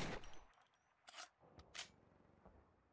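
Metal clicks and clacks as a pistol is handled and reloaded.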